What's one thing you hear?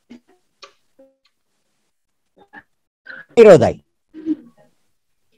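An elderly man speaks calmly through an online call, with pauses.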